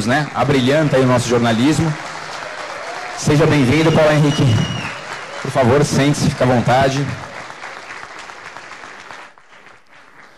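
A small group of people applaud, then the clapping fades away.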